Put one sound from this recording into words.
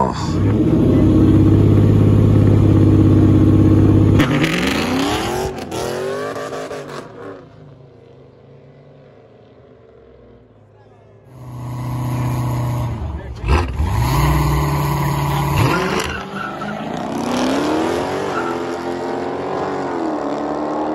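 A powerful car engine rumbles loudly and revs up.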